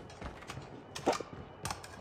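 A gun is reloaded with metallic clicks.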